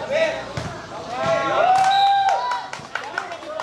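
A crowd of young men cheers loudly.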